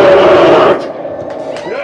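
A cymbal crashes loudly and cuts off.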